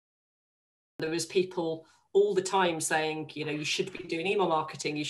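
A woman talks calmly and closely into a microphone.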